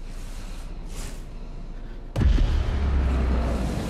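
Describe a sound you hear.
Debris crashes and clatters down with a loud rumble.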